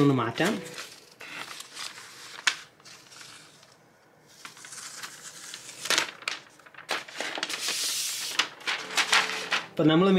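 A plastic film crinkles and rustles as it is peeled away.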